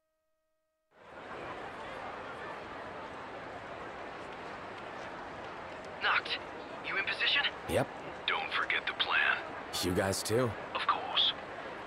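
A large crowd murmurs and bustles outdoors.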